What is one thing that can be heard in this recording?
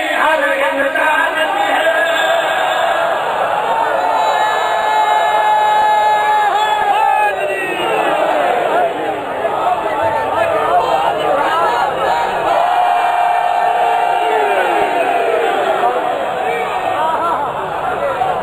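A man sings through a loudspeaker with a long held voice.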